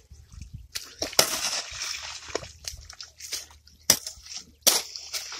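Wet mud squelches and splashes.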